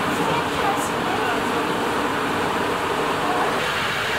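A train rumbles along as it rides.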